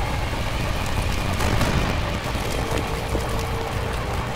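A fire roars nearby.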